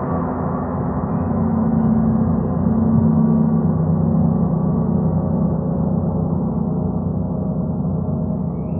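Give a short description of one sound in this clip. A large gong resonates with a deep, swelling drone.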